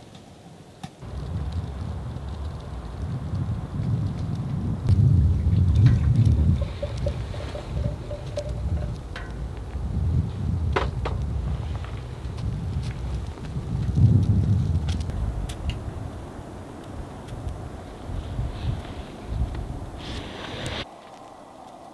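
Wind rumbles and gusts against a tent.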